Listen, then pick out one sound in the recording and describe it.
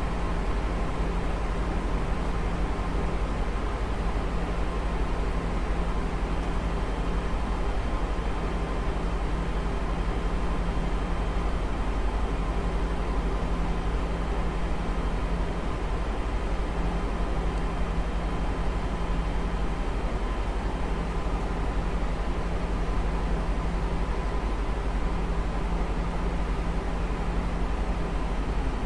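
Jet engines drone steadily, heard from inside the aircraft.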